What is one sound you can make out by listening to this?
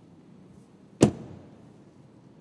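A car door slams shut with a loud thud.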